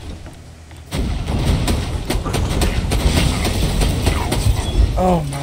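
A rifle fires repeated loud shots.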